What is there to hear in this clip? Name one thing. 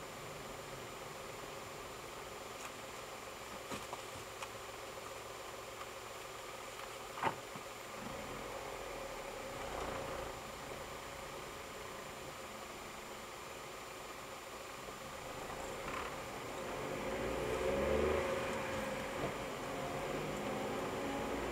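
Traffic rumbles by on a wet road.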